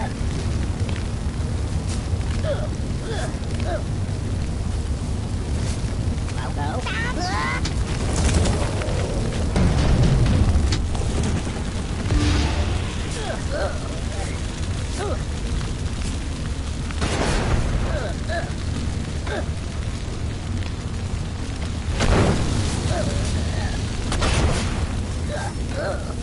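Fire roars and crackles steadily.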